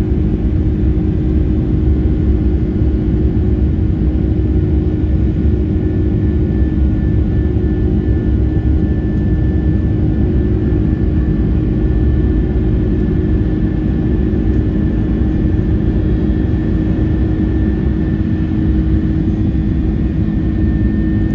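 A jet engine roars steadily close by, with a low rumble and a droning hum.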